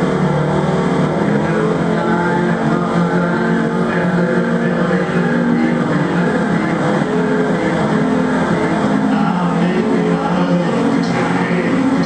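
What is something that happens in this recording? A man sings or hums into a microphone through a loudspeaker.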